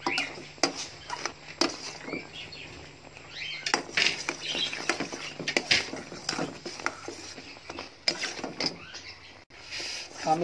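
Bubbling syrup sizzles and froths in a pot.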